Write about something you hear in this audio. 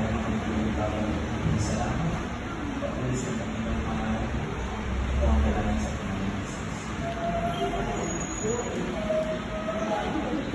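A man speaks calmly through a microphone over loudspeakers in an echoing room.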